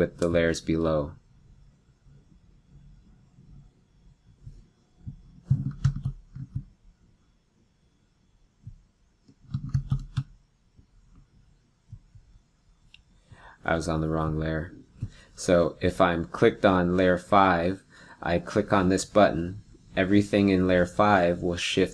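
A young man talks calmly into a microphone, with pauses.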